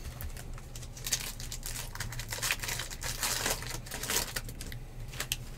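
A foil wrapper crinkles and tears as it is pulled open by hand.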